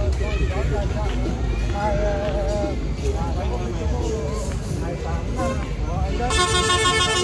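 A middle-aged man talks close by.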